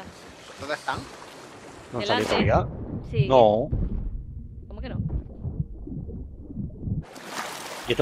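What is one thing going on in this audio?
Water splashes as a swimmer dives under and comes up again.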